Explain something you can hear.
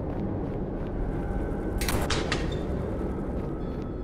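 A heavy metal door clicks and swings open.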